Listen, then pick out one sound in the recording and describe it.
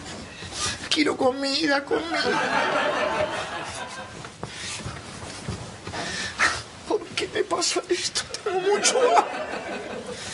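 A man cries out loudly nearby.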